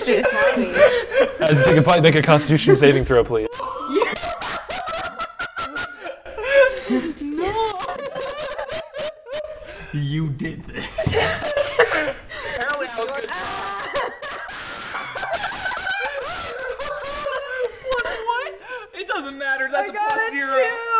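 A group of young men and women laugh loudly together.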